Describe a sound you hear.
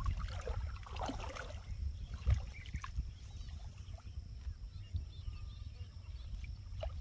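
Water splashes as a man's hands work in shallow water.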